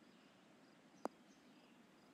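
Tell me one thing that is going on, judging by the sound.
A golf ball lands with a soft thud.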